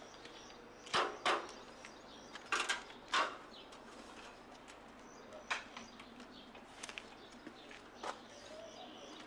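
A man knocks hard on a wooden gate.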